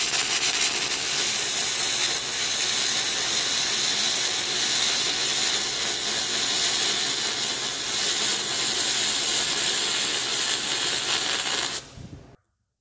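A spinning grinding disc whines and rasps against metal.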